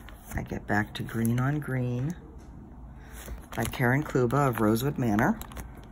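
A plastic sleeve crinkles as it is handled.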